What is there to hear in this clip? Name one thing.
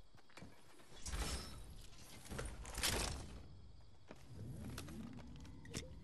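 Leaves rustle as someone pushes into a bush.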